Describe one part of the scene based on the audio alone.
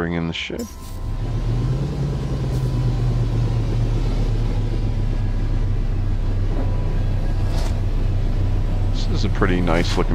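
A spacecraft engine hums low and steady nearby.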